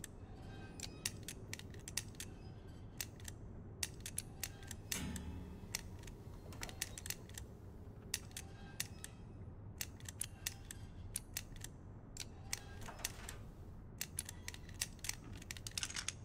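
The dials of a metal combination padlock click as they turn.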